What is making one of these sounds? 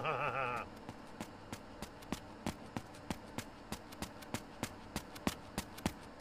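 Quick footsteps patter on a hard floor.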